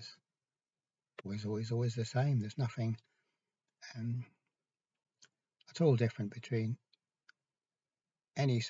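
An elderly man speaks calmly and close to a microphone, in short bursts with pauses.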